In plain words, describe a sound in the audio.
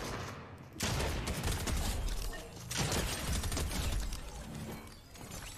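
Rapid gunshots fire loudly in quick bursts.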